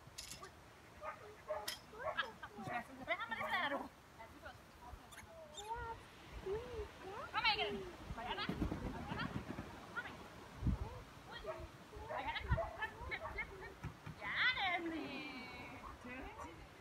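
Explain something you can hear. A woman calls out commands to a dog across an open field.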